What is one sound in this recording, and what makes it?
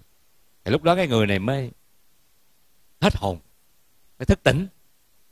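A middle-aged man speaks calmly and warmly into a close microphone, in short phrases.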